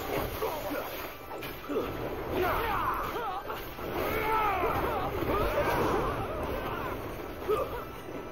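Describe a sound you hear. Blows clash and thud.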